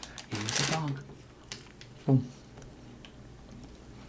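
A young man crunches on a snack.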